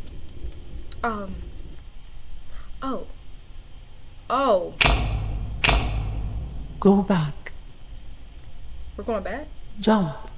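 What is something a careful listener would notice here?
A young woman talks with animation close by, in short bursts.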